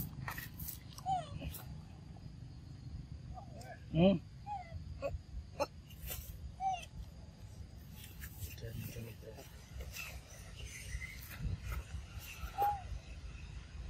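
A young monkey squeaks and chirps in short high calls.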